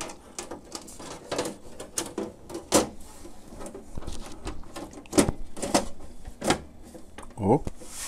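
Hands tap and knock against a metal case.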